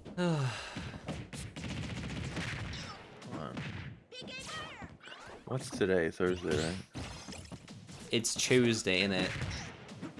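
Punches and hits land with sharp thuds.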